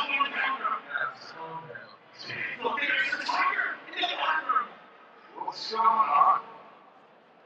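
A large crowd cheers and murmurs in a stadium.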